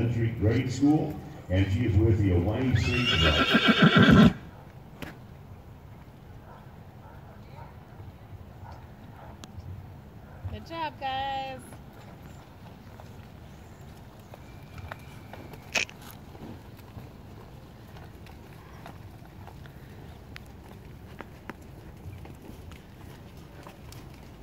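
Horses' hooves thud softly on loose dirt.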